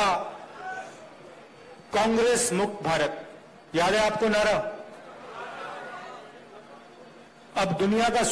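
A man speaks into a microphone in short bursts with pauses, heard through loudspeakers.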